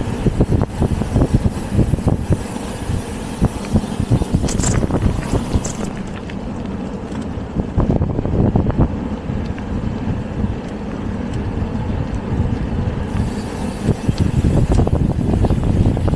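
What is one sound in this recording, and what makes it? Bicycle tyres roll over a paved road.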